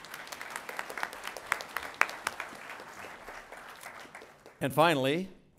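An audience claps in a large hall.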